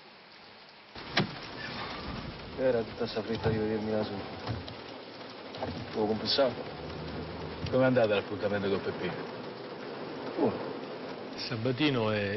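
A man speaks quietly in a car.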